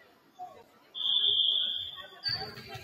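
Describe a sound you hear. A referee's whistle blows sharply in a large echoing gym.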